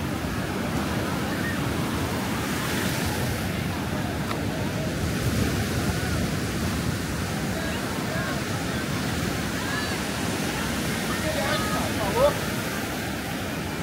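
A crowd of people chatter at a distance.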